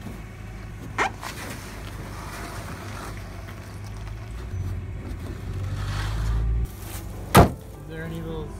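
A wooden crate thuds and scrapes against a truck bed.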